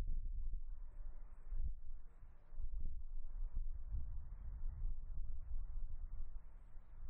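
Gusty wind rumbles and buffets outdoors.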